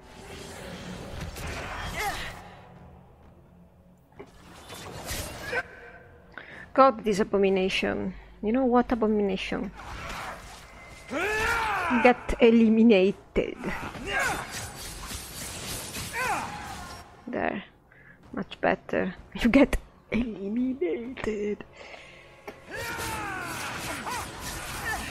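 Magic spells crackle and burst in quick succession.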